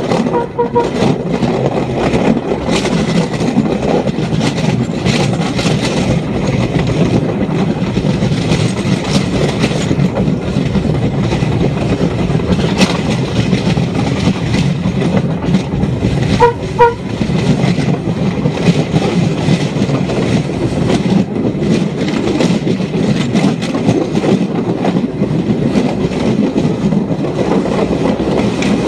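A rail vehicle rumbles and clatters steadily along the tracks.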